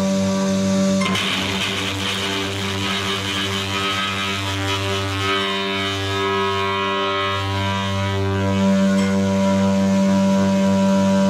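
A loud rock band plays amplified bass, guitars and drums in a large echoing hall.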